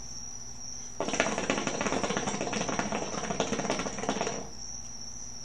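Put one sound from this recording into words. Water gurgles and bubbles in a hookah as a man draws on it.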